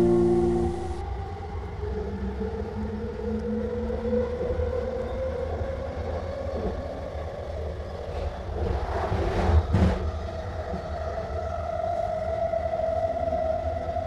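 An electric train motor whines, its pitch slowly rising.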